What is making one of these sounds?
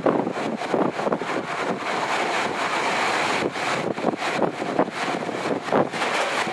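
Wind rushes past the open train window.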